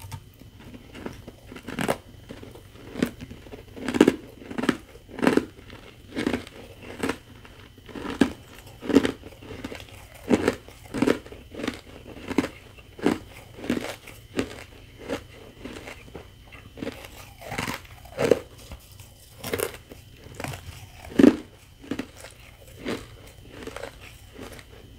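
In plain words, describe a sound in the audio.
A woman crunches ice loudly and close to a microphone, in repeated bites.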